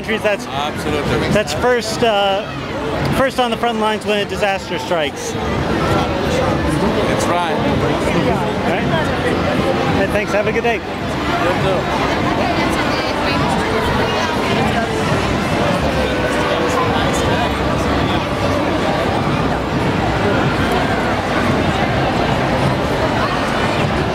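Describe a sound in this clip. A crowd chatters loudly outdoors.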